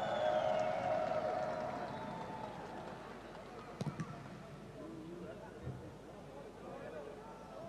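A large stadium crowd murmurs and chants throughout.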